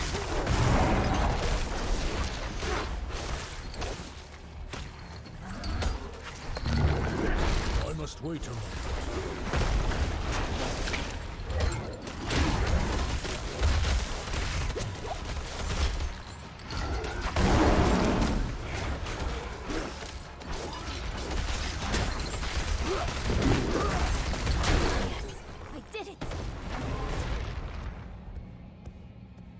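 Game combat sounds of slashing, impacts and creature screeches clash rapidly.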